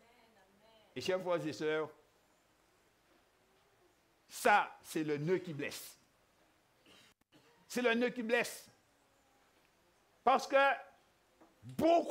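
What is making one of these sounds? A man preaches emphatically through a microphone in bursts, with pauses between phrases.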